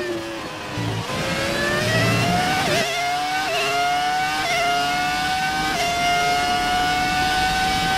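A racing car engine revs high, climbing in pitch and dropping briefly at each gear change.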